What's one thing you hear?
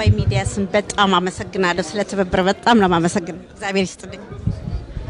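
A woman speaks with animation into a microphone close by.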